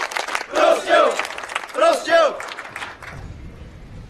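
A large crowd of men chants loudly outdoors.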